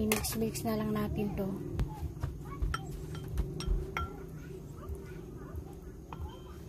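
A spoon stirs liquid in a glass bowl, clinking against the glass.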